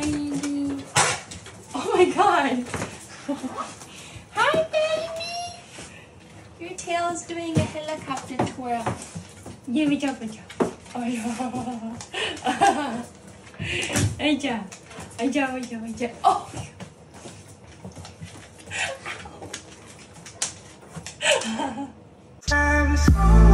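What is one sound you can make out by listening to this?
A dog whines and yips excitedly.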